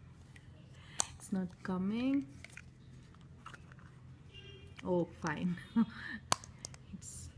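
A plastic bottle cap clicks.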